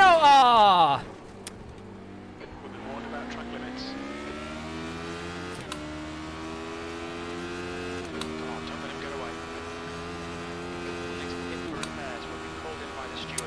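A racing car engine revs up and shifts gears repeatedly.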